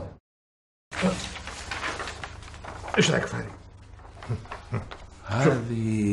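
A middle-aged man speaks in a calm, conversational voice.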